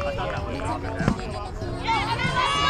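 A rubber ball is kicked with a hollow thump.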